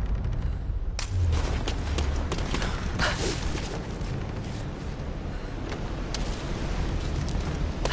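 Hands knock and scrape on wooden beams while climbing.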